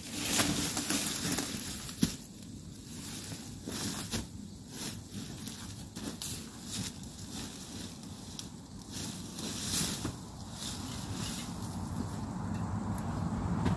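Footsteps crunch on dry leaves at a distance.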